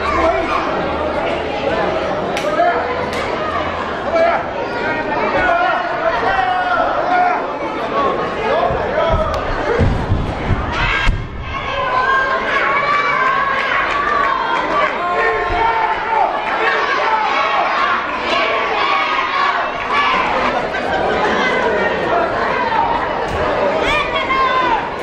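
A large crowd shouts and cheers loudly throughout in an echoing hall.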